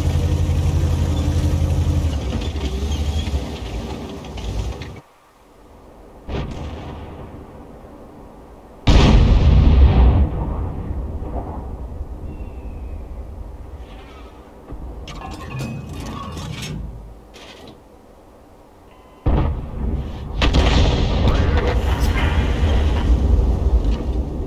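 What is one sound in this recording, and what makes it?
A heavy tank engine rumbles and roars.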